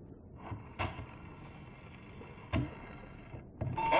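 A needle clicks onto a spinning record.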